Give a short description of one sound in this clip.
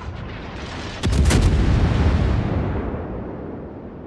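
Big naval guns fire a booming salvo that rumbles away.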